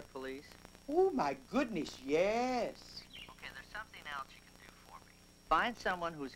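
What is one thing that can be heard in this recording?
An elderly woman speaks with animation into a phone.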